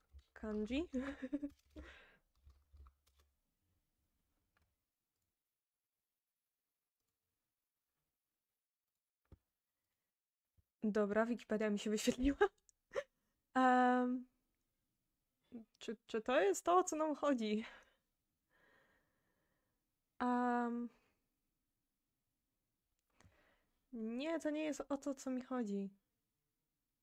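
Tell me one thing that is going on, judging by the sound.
A young woman speaks calmly in short bursts.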